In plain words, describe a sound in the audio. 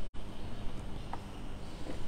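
A cup is set down on a table with a light knock.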